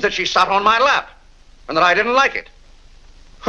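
An older man speaks in a clear, measured voice.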